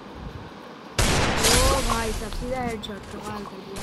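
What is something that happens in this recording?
A short triumphant game jingle plays loudly.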